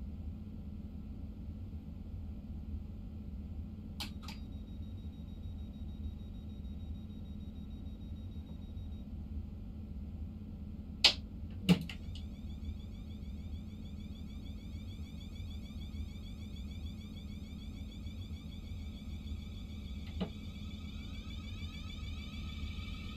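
A train rumbles low and steady as it rolls along the track.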